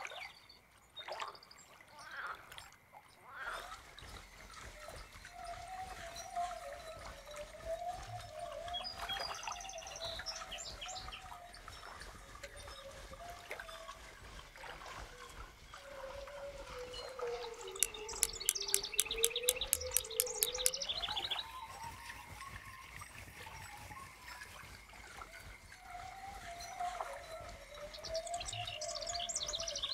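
A fishing reel winds in line with a soft whir.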